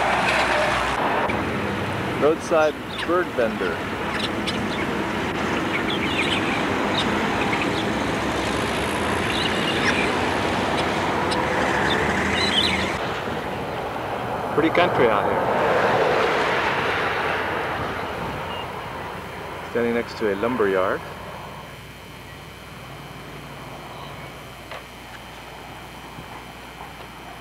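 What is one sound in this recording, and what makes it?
A car drives along a road with a steady rumble of road noise.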